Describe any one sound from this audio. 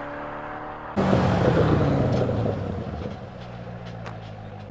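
A sports car engine roars as the car pulls away from an intersection.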